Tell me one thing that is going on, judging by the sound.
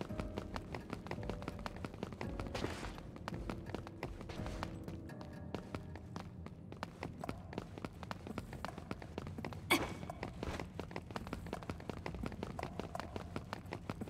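Footsteps tap quickly on a hard metal floor.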